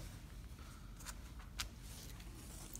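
Small metal snaps clink as a hand picks them up from a table.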